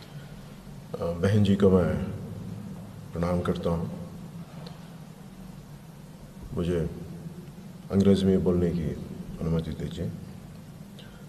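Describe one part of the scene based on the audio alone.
A man speaks slowly into a microphone, pausing between phrases.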